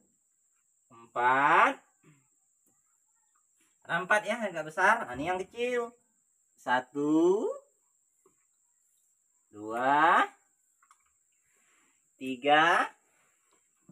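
A man speaks nearby in short, calm phrases.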